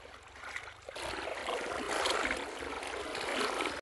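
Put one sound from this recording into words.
A river flows and splashes over stones.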